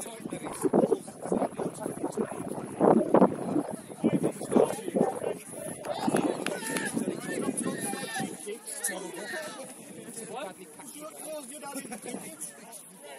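Men and women on the sideline talk and call out nearby, outdoors.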